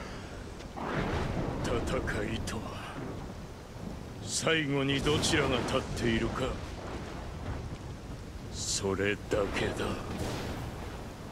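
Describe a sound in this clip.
A man speaks in a deep, intense voice.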